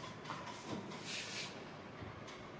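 A plastic tray rustles and crinkles.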